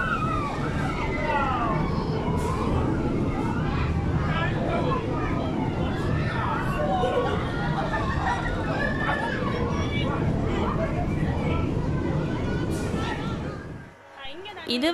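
A spinning ride rumbles steadily.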